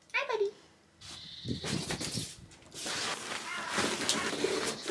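A cover rustles and thumps onto a tub.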